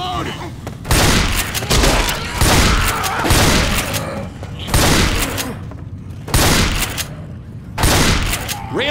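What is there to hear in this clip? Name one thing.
A shotgun fires loud blasts indoors.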